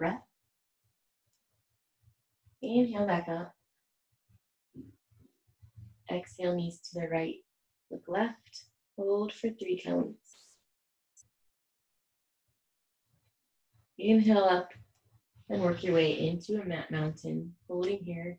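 A young woman speaks calmly and clearly, close to a microphone.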